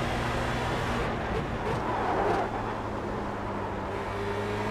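A racing car engine drops in pitch as the car brakes and shifts down.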